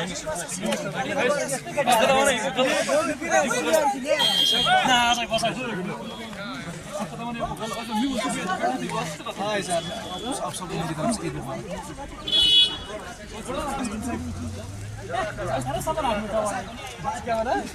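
Several men talk and greet each other close by, outdoors.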